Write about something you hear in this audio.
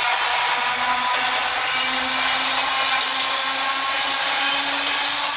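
An electric train hums steadily as it runs along the rails.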